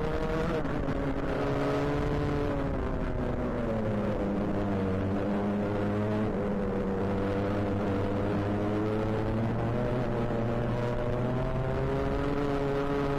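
A kart engine buzzes loudly up close, its pitch rising and falling with the throttle.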